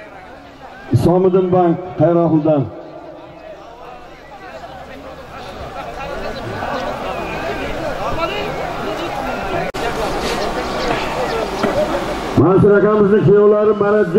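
A man shouts loudly in long calls.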